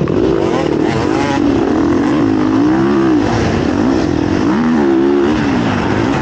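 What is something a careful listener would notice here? Other dirt bike engines whine nearby.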